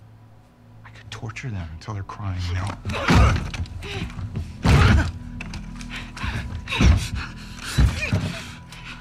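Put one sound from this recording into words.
A man and a woman grunt and strain as they struggle.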